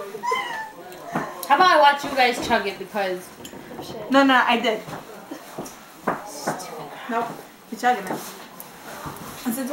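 Another young woman talks casually close by.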